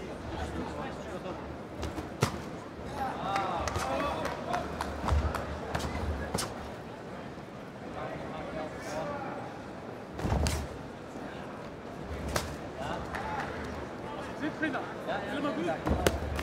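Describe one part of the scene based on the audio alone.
A crowd murmurs and cheers in a large hall.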